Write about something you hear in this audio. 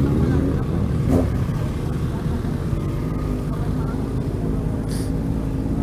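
A motorcycle engine rumbles up close at a steady pace.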